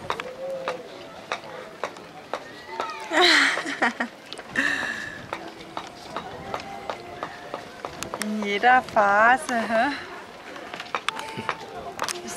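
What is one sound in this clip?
Wet clay squelches softly under a woman's hands.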